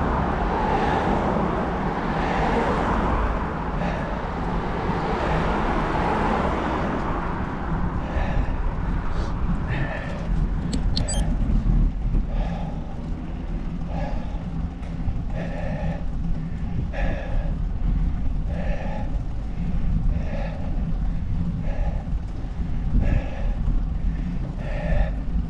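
Small wheels rumble steadily over rough asphalt close by.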